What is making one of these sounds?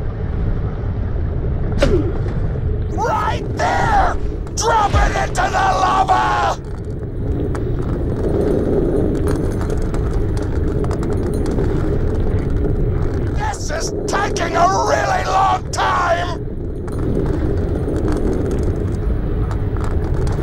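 A deep, steady rumble of molten lava drones on.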